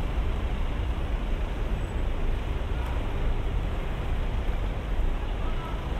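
Footsteps pass close by on pavement.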